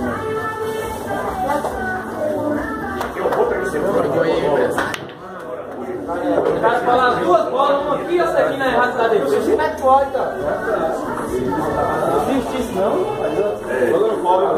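Several men talk and chatter nearby.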